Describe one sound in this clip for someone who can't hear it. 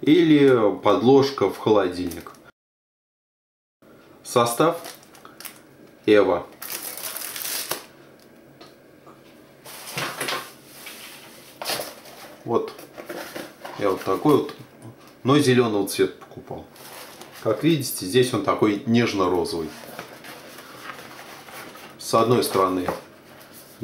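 Plastic packaging and thin plastic sheets crinkle and rustle as hands handle them.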